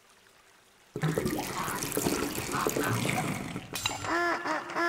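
Water splashes as a duck paddles through it.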